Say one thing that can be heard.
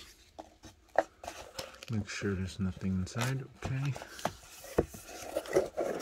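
A hand shuffles through plastic-wrapped card packs.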